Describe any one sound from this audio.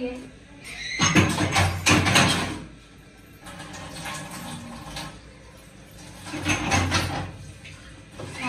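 Dishes clatter in a sink.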